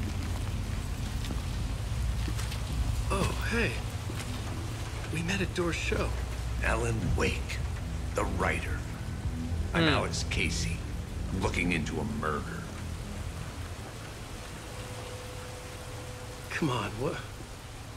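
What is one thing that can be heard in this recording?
Rain falls steadily all around.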